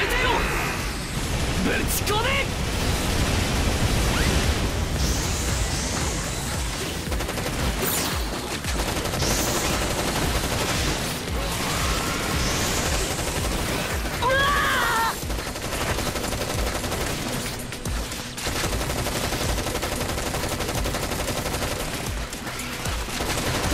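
Steady game music plays throughout.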